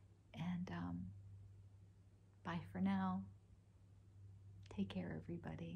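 An older woman speaks calmly and warmly, close by.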